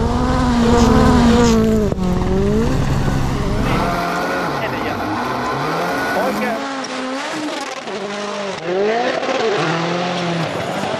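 A rally car engine roars and revs hard, rising and falling in pitch as it shifts gears.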